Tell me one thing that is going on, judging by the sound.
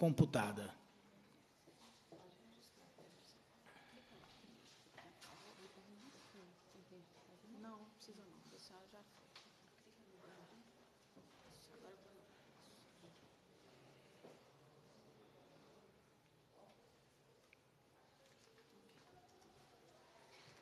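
People murmur quietly in the background.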